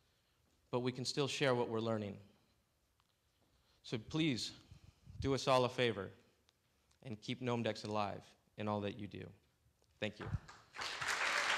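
A man speaks through a microphone to an audience in a large hall.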